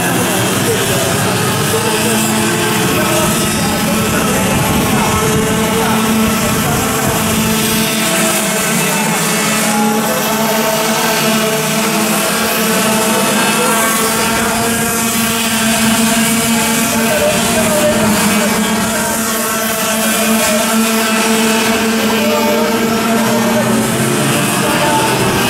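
Small kart engines buzz and whine loudly as they race around a track.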